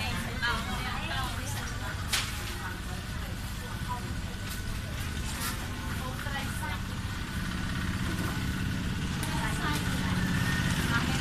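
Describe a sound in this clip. A young woman talks calmly to a small group nearby.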